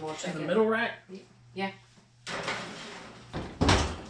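An oven door opens and bangs shut.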